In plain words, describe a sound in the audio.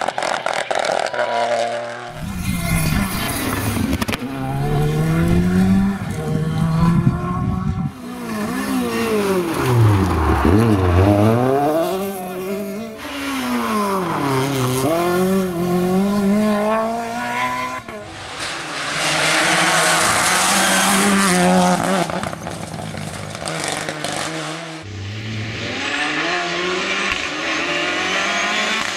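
Engines crackle and pop as drivers lift off the throttle.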